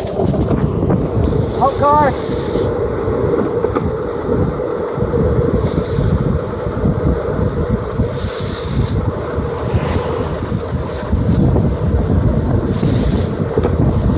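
Wind buffets the microphone with a heavy rumble.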